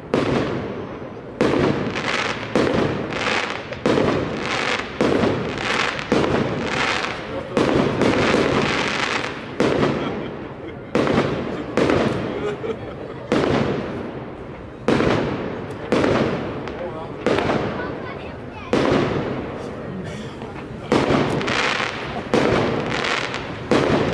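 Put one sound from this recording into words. Fireworks crackle after the bursts.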